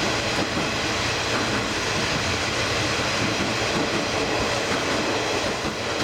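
A train carriage rumbles and rattles steadily along the tracks.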